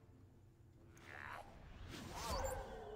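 A magical spell effect whooshes with a bright shimmer.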